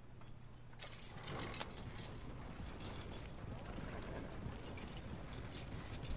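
Horses pull a creaking wagon over grass at a steady walk.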